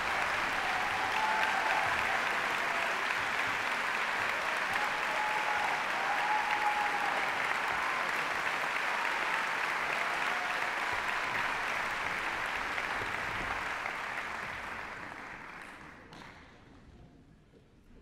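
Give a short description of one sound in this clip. A large crowd applauds loudly in a big hall and slowly fades out.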